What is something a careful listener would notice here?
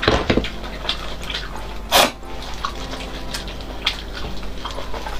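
A woman chews and slurps loudly close to a microphone.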